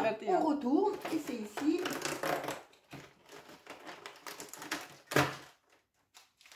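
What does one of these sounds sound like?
Cardboard rustles and tears as a box flap is opened.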